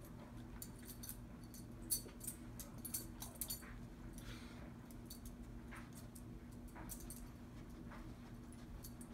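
A dog's leash clip jingles and clinks as the dog moves about.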